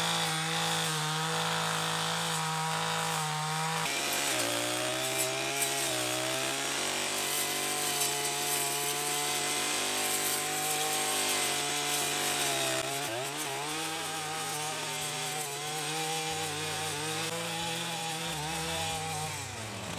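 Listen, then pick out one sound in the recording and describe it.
A brush cutter's spinning line swishes through dry grass.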